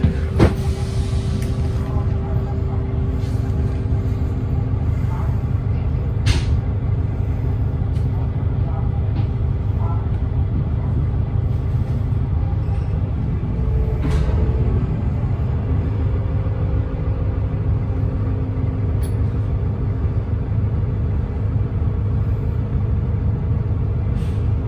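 The bus interior rattles and knocks as it moves.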